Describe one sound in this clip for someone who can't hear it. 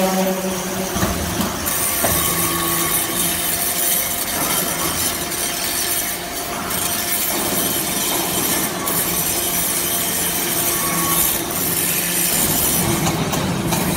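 A conveyor rattles as metal shavings ride up it.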